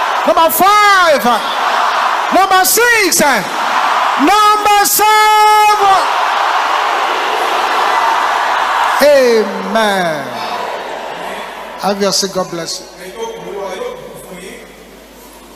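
A man preaches loudly and with fervour through a microphone.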